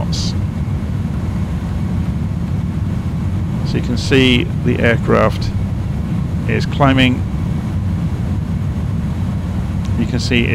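Aircraft engines drone steadily in a cockpit.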